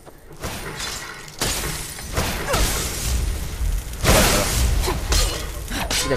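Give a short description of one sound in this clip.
A magic spell crackles and buzzes loudly.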